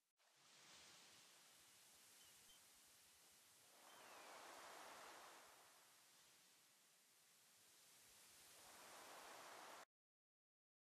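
Waves wash onto a shore, swelling and fading in slow surges.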